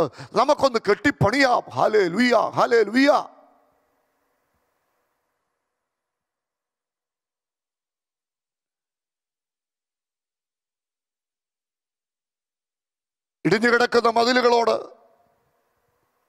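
A man preaches forcefully into a microphone, his voice loud and echoing.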